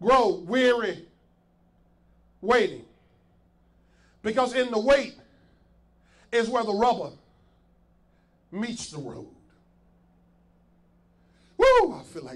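A man preaches with animation into a microphone, in short bursts with pauses.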